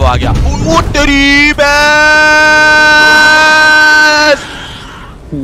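A young man screams loudly and long in fright.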